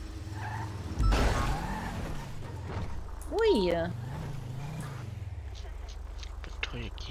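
A car engine hums and revs as a car drives off.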